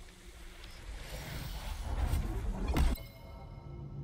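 A shimmering magical whoosh swells and rises, then cuts off.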